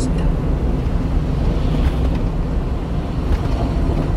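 A lorry roars past close by.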